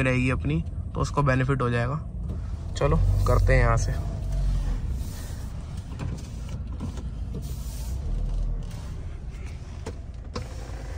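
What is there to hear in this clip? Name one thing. A car engine hums with a steady low road rumble from inside the car.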